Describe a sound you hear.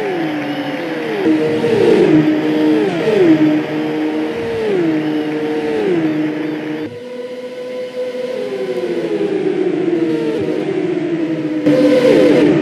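Race cars roar past one after another.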